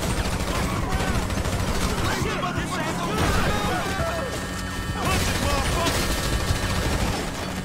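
Gunshots crack from a rifle in a game.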